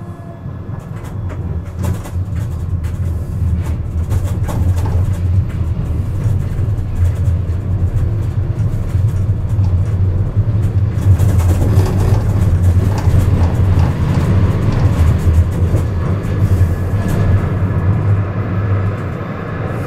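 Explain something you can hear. Wheels click and clatter over rail joints and switches.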